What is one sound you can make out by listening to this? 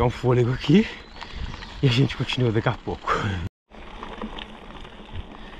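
Bicycle tyres roll over a dirt track.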